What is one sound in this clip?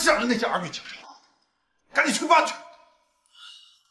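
A man speaks sternly, close by.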